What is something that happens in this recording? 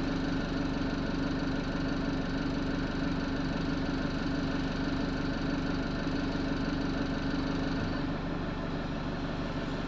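A bus rattles and vibrates as it drives.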